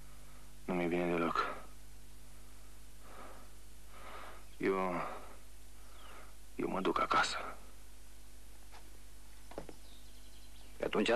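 A man speaks loudly nearby, in short bursts.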